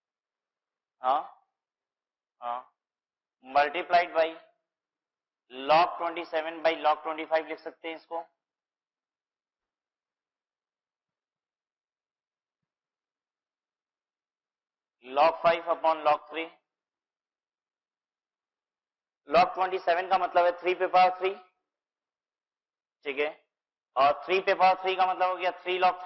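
A man speaks calmly through a clip-on microphone, explaining in pauses.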